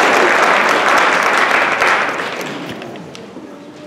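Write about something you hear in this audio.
Applause rings out in a large hall and quickly fades.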